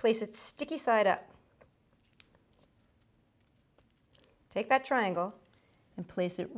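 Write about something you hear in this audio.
A woman speaks calmly and clearly into a nearby microphone, pausing between phrases.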